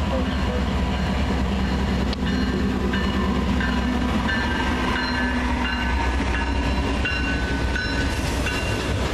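Diesel freight locomotives rumble past close by.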